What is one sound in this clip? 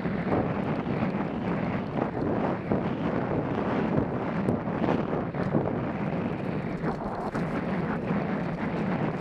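A motorbike engine roars steadily up close.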